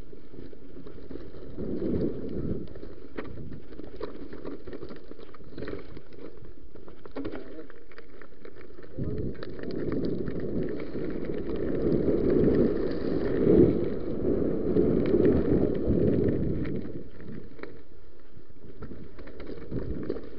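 Bicycle parts rattle and clatter over bumps.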